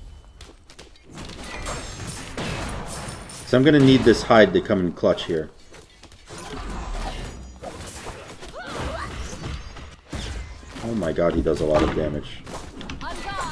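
Game combat effects clash and whoosh.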